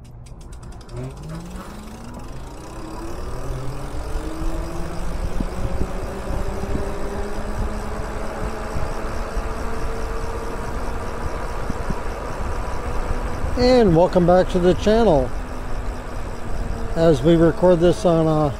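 An electric motor whines, rising in pitch as it speeds up, then holds steady.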